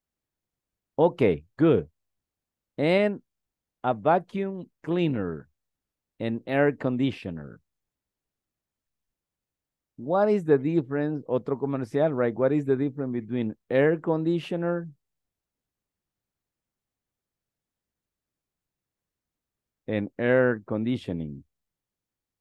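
A woman speaks calmly through an online call, pausing often.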